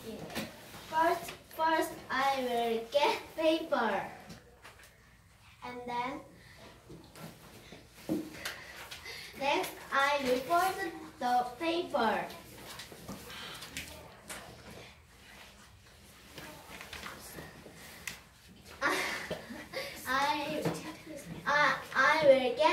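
A second young girl answers in a clear, lively voice.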